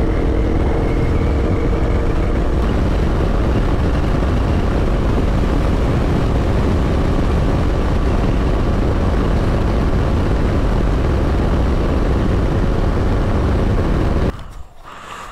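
A motorcycle engine hums steadily at speed.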